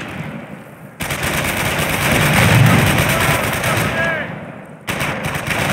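Gunfire and explosions crackle in a battle.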